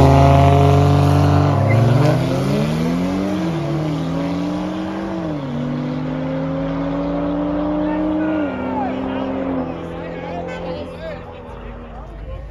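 Two car engines roar loudly as the cars accelerate away, shifting gears.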